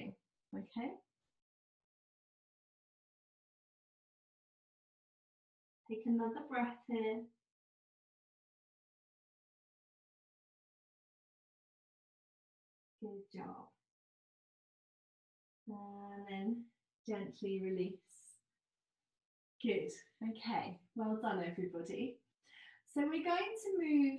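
A woman speaks calmly and slowly, close by, with pauses.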